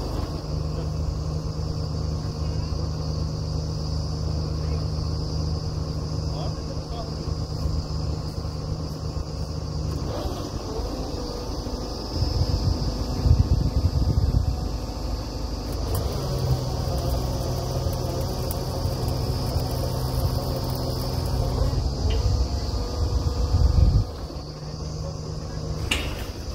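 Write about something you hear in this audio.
A drilling rig's diesel engine runs loudly and steadily outdoors.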